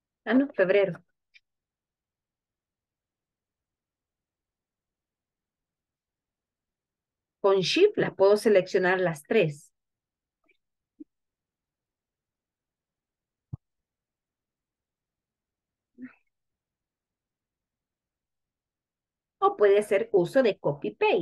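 A young woman speaks calmly and clearly into a microphone, pausing between phrases.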